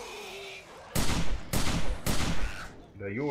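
A gun fires several loud shots in quick succession.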